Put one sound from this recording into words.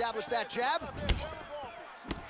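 A kick lands with a sharp thud.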